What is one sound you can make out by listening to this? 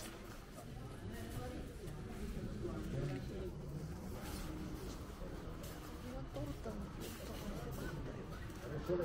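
Several people talk in the background indoors.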